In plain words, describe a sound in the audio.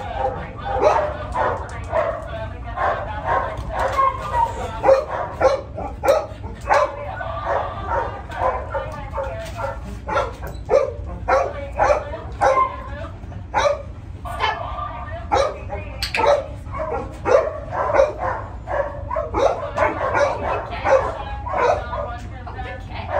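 A woman talks to a dog with animation.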